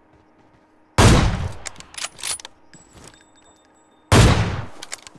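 A rifle fires loud single shots that echo.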